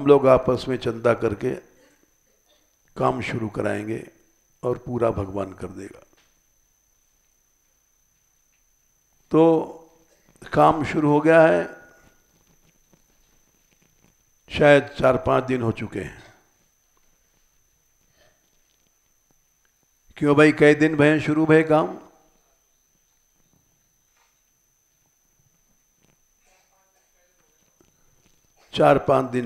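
An elderly man speaks calmly into a close microphone, in short phrases with long pauses.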